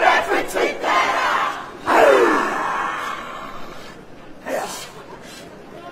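Men shout fiercely in chorus outdoors.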